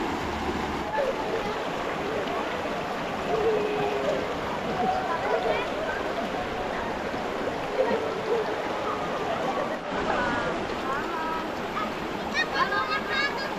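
Children's voices call out and laugh in the distance.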